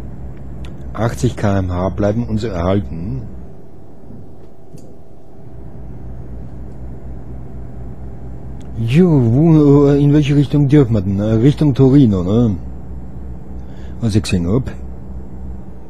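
A man talks calmly into a close microphone in short bursts.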